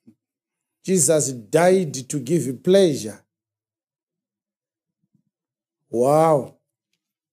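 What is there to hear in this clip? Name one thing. A man preaches with emphasis into a close microphone, pausing between phrases.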